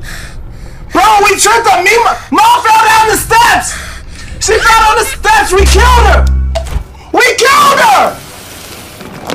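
A young man shouts excitedly into a close microphone.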